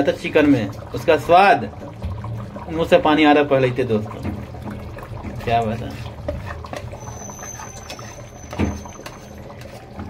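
Liquid pours into a pan.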